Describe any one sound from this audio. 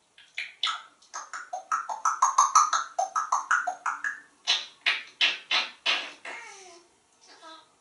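A parrot makes rapid clacking sounds.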